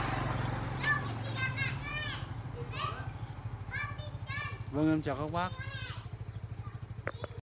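A motorbike engine putters steadily nearby.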